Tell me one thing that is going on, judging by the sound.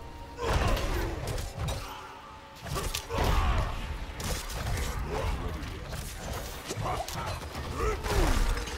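Heavy weapon blows and magic effects crash in a video game battle.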